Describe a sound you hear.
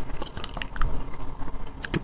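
A fork scrapes against a plate.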